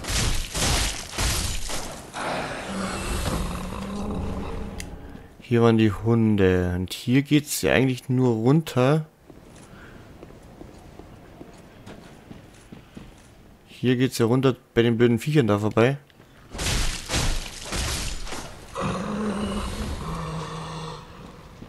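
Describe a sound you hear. A magic spell bursts with a rushing, crackling whoosh.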